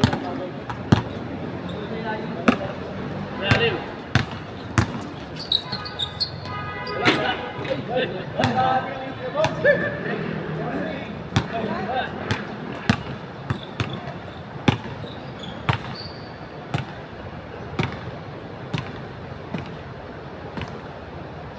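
A basketball bounces on a hard court, thudding again and again.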